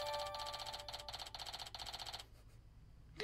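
A bright electronic chime rings out.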